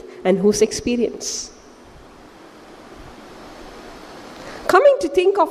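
A woman speaks with animation into a microphone, with pauses.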